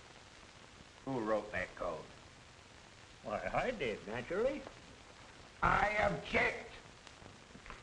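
An elderly man answers in a rough, drawling voice.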